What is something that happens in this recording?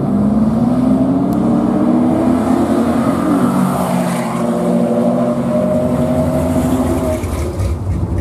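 Race cars accelerate hard down a drag strip, their engines revving higher and fading away.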